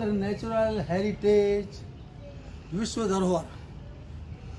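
An elderly man speaks close by, explaining with animation.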